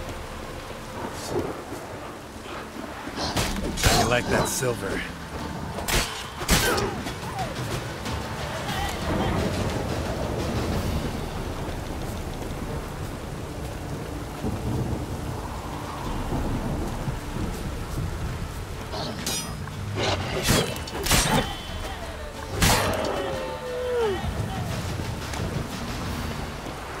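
A man tells a story with animation.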